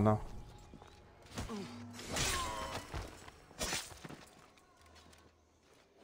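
A blade strikes flesh with a sharp thud.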